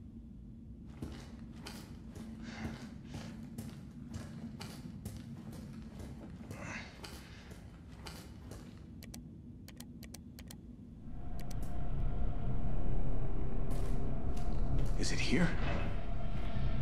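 Boots thud on a hard floor.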